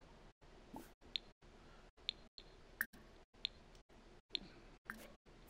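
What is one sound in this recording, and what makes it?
Soft game interface clicks tick several times.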